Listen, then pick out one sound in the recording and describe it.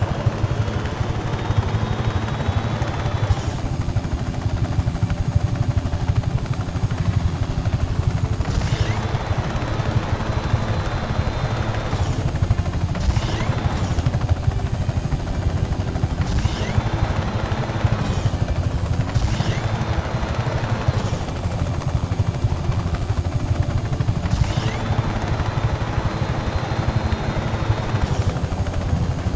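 A helicopter's rotor thumps steadily and fast close by.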